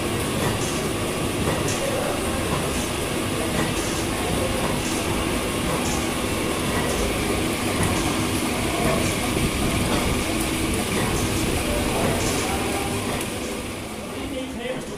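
Steam hisses loudly and steadily.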